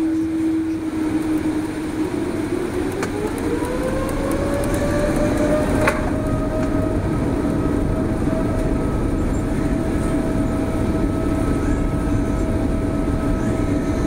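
A jet engine's whine rises in pitch as it speeds up, then holds high.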